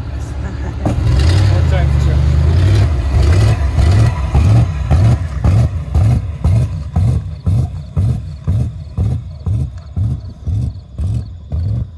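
A car engine roars as the car speeds off and fades into the distance.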